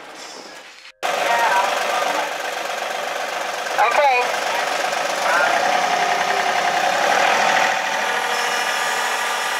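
A tractor engine rumbles steadily close by.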